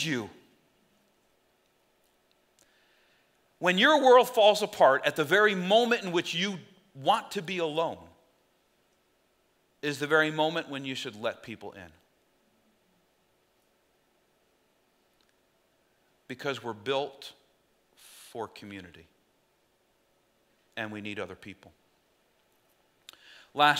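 A middle-aged man speaks with animation through a microphone, with pauses between phrases.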